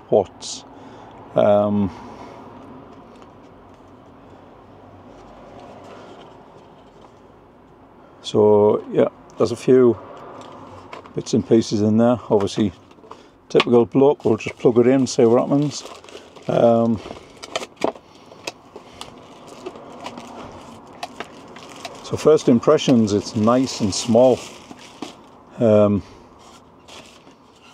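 Paper and cardboard rustle as a box is unpacked.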